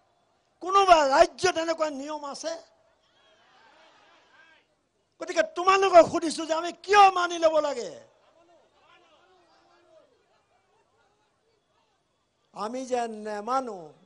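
A man speaks forcefully into a microphone through loudspeakers, in bursts with pauses.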